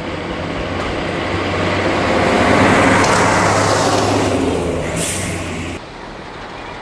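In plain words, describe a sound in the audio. A diesel railcar drives past close by with a loud droning engine.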